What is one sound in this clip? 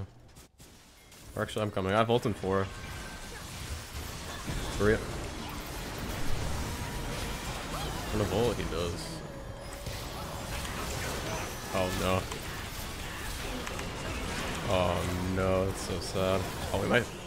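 Game spell effects whoosh and crackle in a busy fight.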